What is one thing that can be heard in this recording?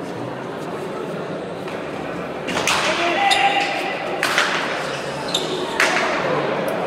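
A ball smacks hard against a wall and echoes through a large hall.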